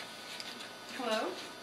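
A woman speaks briefly into a telephone.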